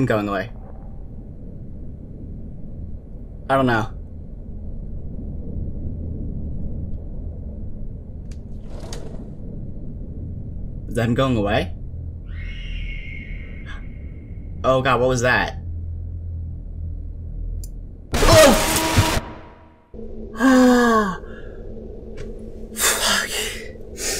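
A young man talks in short bursts close to a microphone.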